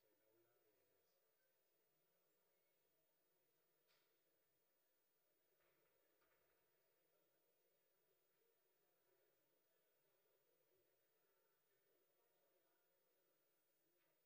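A man speaks calmly through a microphone in a large hall, heard faintly from afar.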